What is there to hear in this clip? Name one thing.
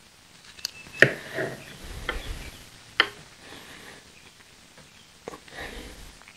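Plastic parts click and snap as hands work on them up close.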